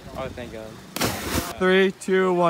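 A boy splashes into the water.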